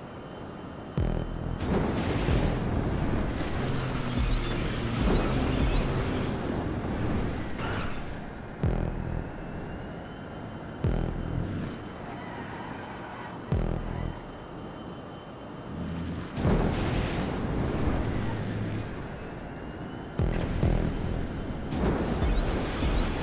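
A rocket booster hisses and roars in bursts.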